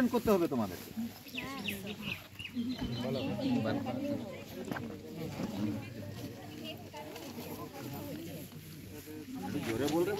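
A young man speaks to a group outdoors, heard nearby.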